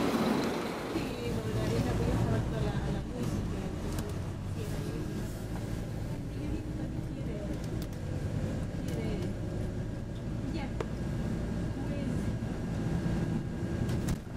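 A bus engine drones steadily from inside while riding.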